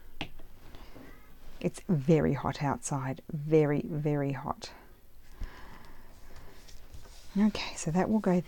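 Paper strips rustle softly as they are handled.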